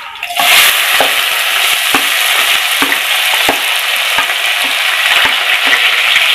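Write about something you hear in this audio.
A metal spoon scrapes and taps against a pan.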